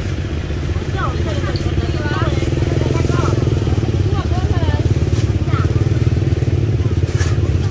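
A motorcycle engine idles nearby with a steady throbbing rumble.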